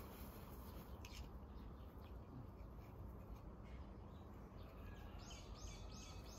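A toy plastic golf club taps a ball on grass.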